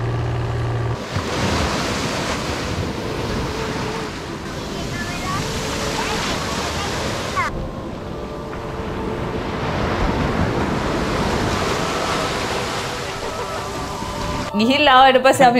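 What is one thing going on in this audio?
Waves wash gently onto a sandy shore.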